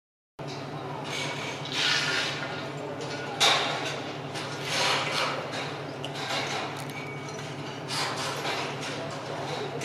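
The diesel engine of a rough-terrain crane drones in the distance.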